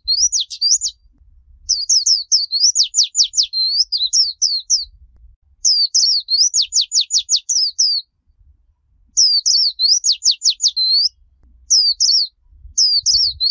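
A small bird sings close by in rapid, high, warbling trills.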